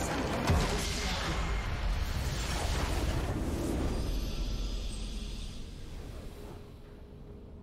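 A base structure explodes with a loud rumbling blast.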